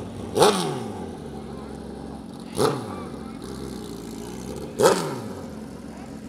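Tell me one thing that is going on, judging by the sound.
A motorcycle engine revs loudly in sharp bursts close by.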